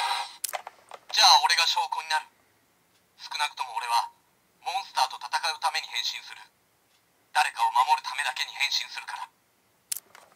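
A toy belt plays short recorded voice calls through a small speaker.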